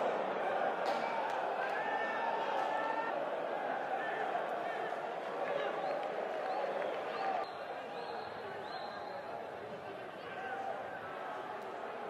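Men shout and call out to each other across an open stadium.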